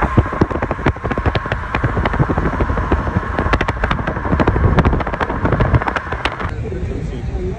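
A car hums along the road.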